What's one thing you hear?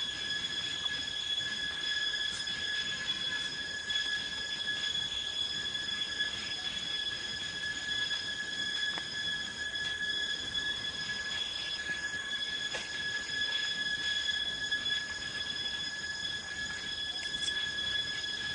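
A monkey chews on crisp leaves up close.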